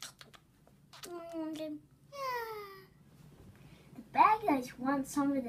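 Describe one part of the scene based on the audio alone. A young boy speaks with animation close by.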